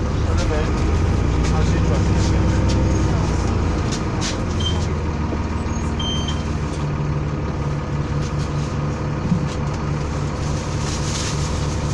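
Plastic shopping bags rustle as passengers walk down the aisle.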